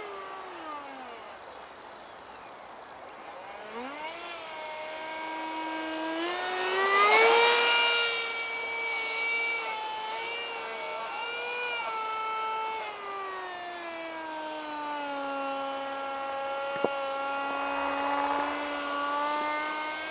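A small model aircraft's motor whines overhead, rising and falling in pitch.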